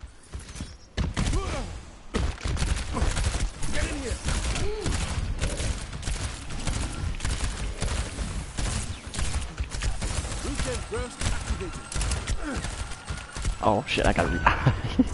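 A rapid-firing gun shoots in bursts.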